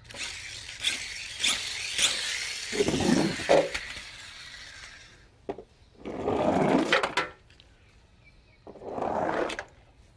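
A toy car rolls down a cardboard ramp.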